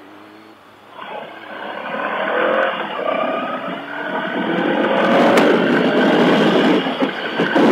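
A motorcycle engine drones and rises in pitch as the bike speeds away.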